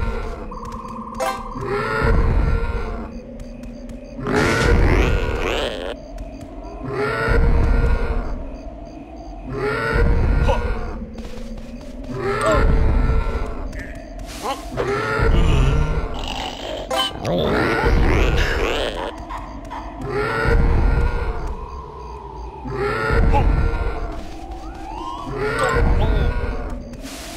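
Rhythmic game music with a repeating beat plays throughout.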